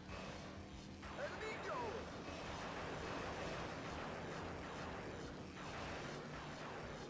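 Tyres screech and skid on asphalt.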